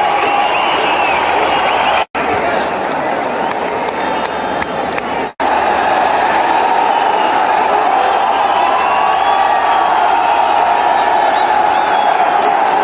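A large stadium crowd cheers and roars loudly throughout.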